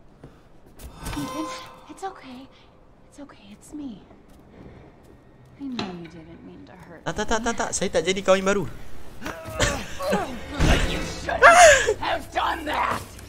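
A young woman speaks softly, then snarls angrily.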